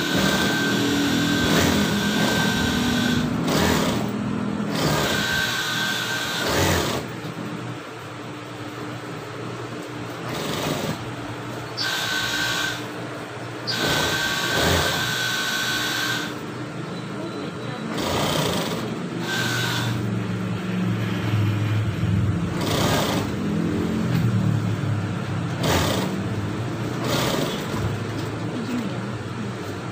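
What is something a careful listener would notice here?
An industrial sewing machine stitches through fabric.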